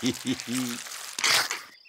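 A man laughs in deep snorting chuckles.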